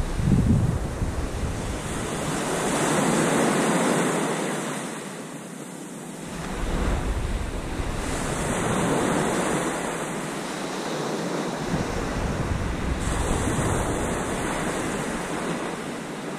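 Small waves wash onto a sandy beach.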